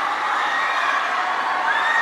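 A man shouts to the crowd through a microphone.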